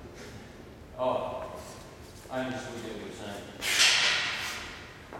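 A man exhales sharply while lifting a barbell.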